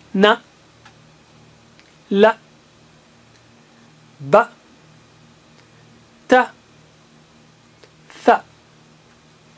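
A middle-aged man speaks short syllables clearly into a microphone, pausing between each.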